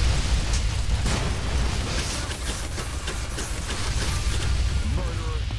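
A flamethrower roars steadily.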